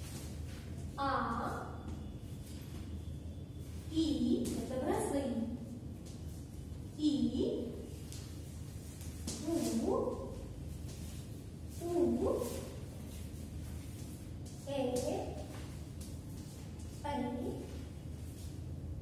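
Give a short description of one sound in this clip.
A young woman calls out short sounds clearly and slowly, close by, with pauses between them.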